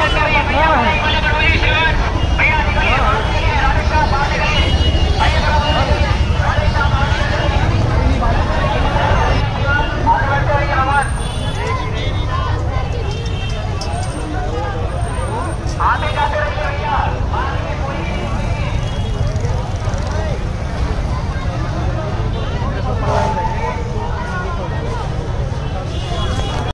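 A crowd of men and women chatter outdoors close by.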